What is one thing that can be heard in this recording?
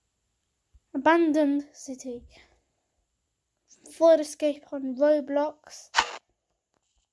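A young boy talks with animation close to a microphone.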